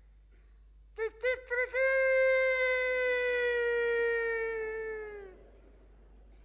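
A woman sings a long, high held note that slowly falls away.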